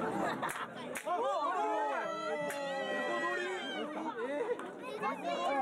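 Young children shout and cheer excitedly close by.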